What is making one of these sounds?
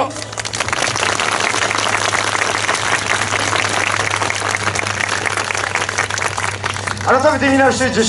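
An audience applauds outdoors.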